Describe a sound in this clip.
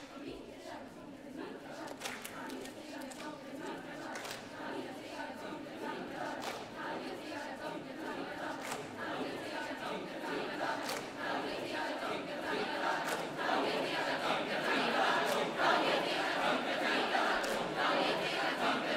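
A large children's choir sings together in a big echoing hall, growing louder.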